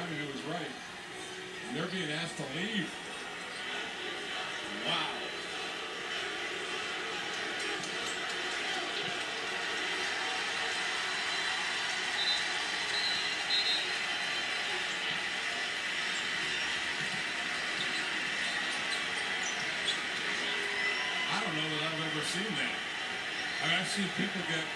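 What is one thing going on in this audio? A large crowd roars and cheers, heard through a television speaker.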